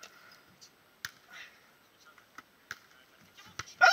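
A volleyball is struck with a dull thump.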